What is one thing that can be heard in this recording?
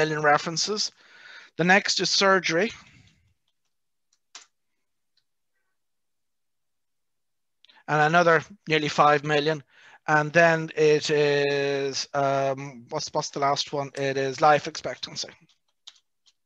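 A middle-aged man speaks calmly into a microphone, as on an online call.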